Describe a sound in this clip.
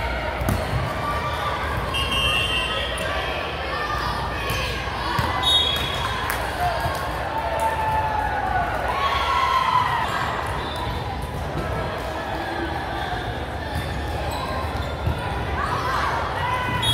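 Young women chatter and call out across a large echoing gym.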